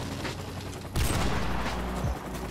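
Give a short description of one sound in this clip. A rifle fires with a loud bang and a ringing echo.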